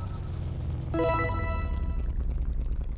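A bright chime jingles briefly.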